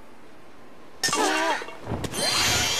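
A golf ball drops into the cup with a hollow clunk.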